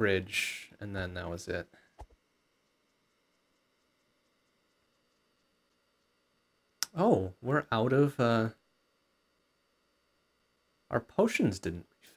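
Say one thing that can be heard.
A man talks with animation into a close microphone, in short bursts with long pauses.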